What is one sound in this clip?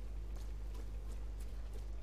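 Footsteps run across a wet stone floor.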